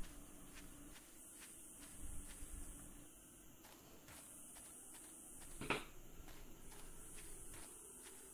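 Footsteps tread steadily over grass at a walking pace.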